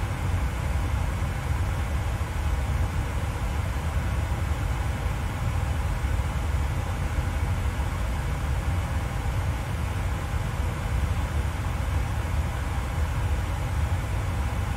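Jet engines drone steadily in a low rumble.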